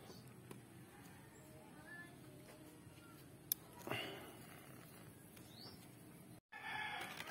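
A small metal valve clicks and rattles as a hand turns it.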